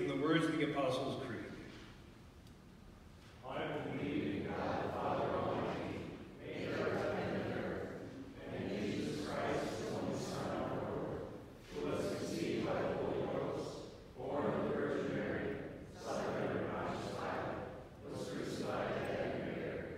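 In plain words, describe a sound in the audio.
A man sings through a microphone in a large echoing hall.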